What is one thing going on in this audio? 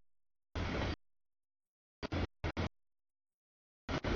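A freight train rumbles past on the tracks.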